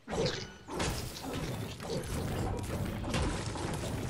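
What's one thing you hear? A video game pickaxe strikes stone.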